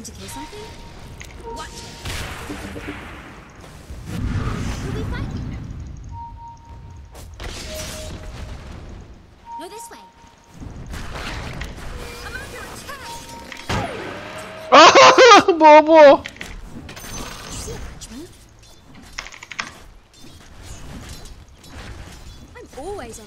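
Game sound effects of spells and blows clash and whoosh.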